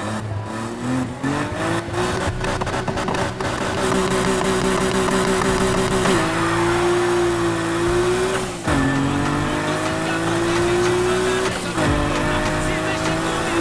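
A car engine roars as it accelerates hard, climbing in pitch and dropping at each gear change.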